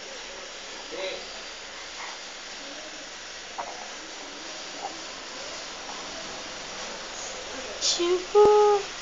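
A baby babbles and coos softly close by.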